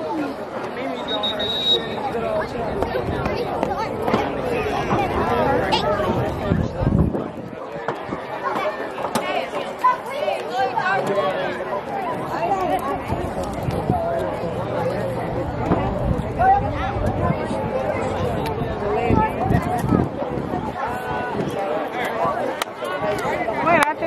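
Many voices of boys and men chatter and call out nearby, outdoors.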